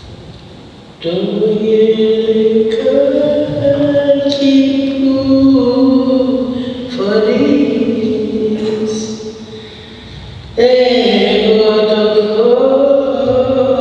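Music with long held notes plays loudly through loudspeakers in an echoing hall.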